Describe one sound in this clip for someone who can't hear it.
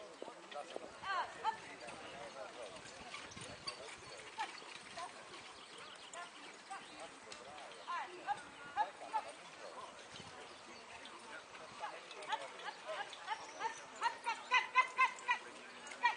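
A man calls out to horses.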